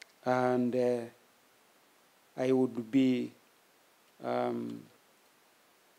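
A man speaks slowly and formally into a microphone, heard over a loudspeaker, with pauses between phrases.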